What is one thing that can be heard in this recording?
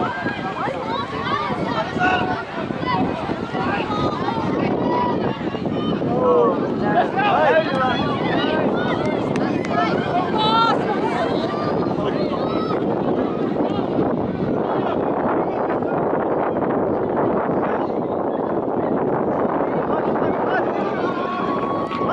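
A crowd of children and adults shouts and cheers nearby outdoors.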